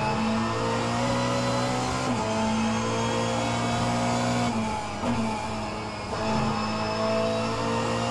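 A simulated race car engine roars steadily, its pitch dropping at gear shifts and braking before climbing again.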